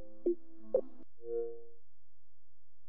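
Short electronic menu chimes beep a few times.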